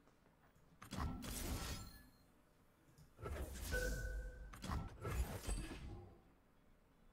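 Magical whooshing game sound effects play in loud bursts.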